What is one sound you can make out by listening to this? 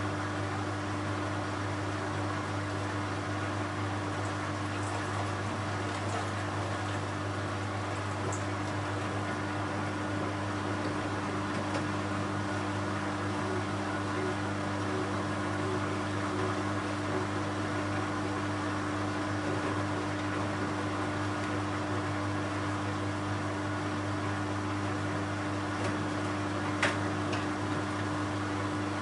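Clothes thump softly inside a tumbling washing machine drum.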